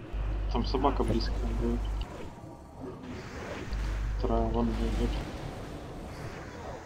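Magic blasts and battle effects whoosh and crackle.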